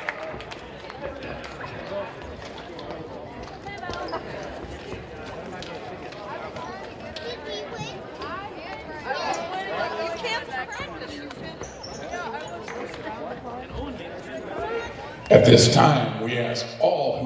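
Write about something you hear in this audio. Players and a crowd chatter and call out in a large echoing gym.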